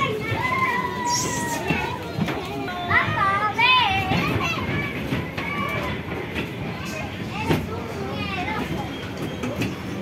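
Young girls talk and call out excitedly close by.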